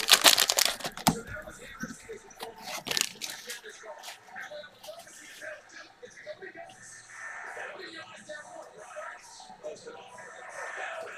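Cards riffle and tap as they are sorted.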